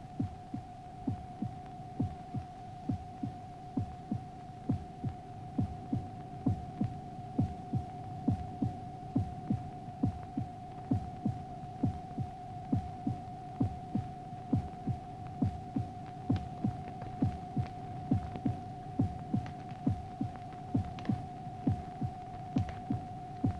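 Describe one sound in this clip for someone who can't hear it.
A spinning record thumps in a steady, even beat.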